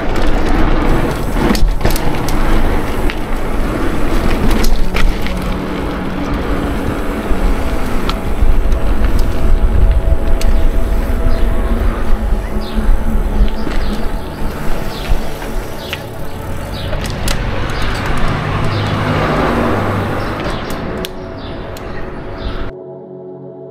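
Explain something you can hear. Bicycle tyres roll over pavement and asphalt.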